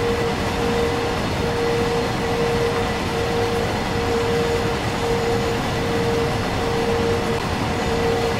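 A locomotive engine drones with a steady hum.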